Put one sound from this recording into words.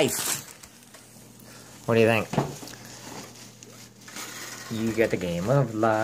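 Wrapping paper crinkles and tears.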